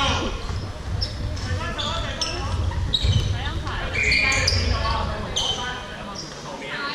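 Sports shoes squeak sharply on a hard indoor court in a large echoing hall.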